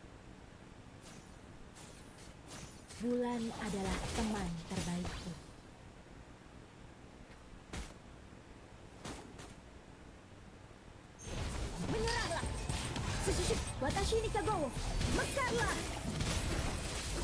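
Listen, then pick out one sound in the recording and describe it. Game spell effects zap and crackle.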